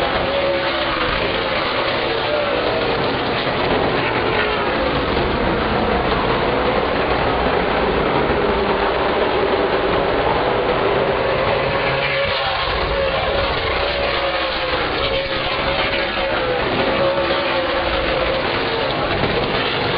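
Race car engines roar loudly as cars speed around a track.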